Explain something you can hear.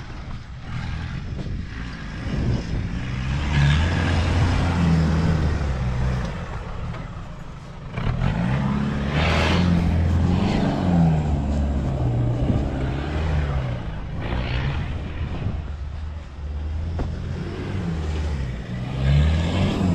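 A truck engine roars and revs hard up close, outdoors.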